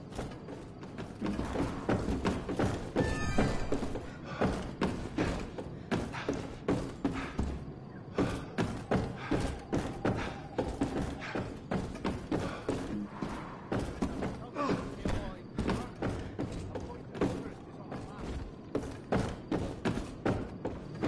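Footsteps thud on creaking wooden floors and stairs.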